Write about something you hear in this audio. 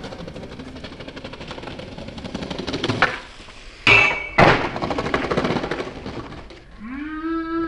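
Skateboard wheels roll and rumble over concrete.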